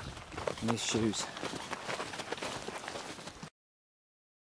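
Footsteps crunch on dry sandy ground.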